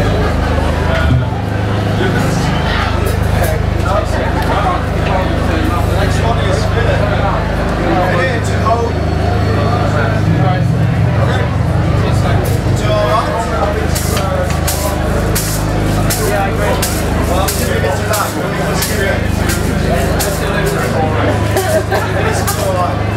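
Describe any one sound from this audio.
A band plays loud amplified rock music.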